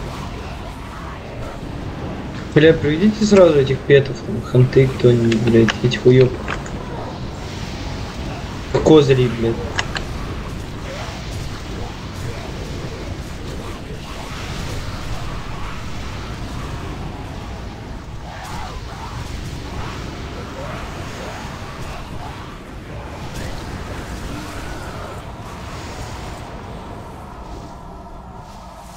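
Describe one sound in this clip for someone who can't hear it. Spells crackle and weapons clash in a fierce battle.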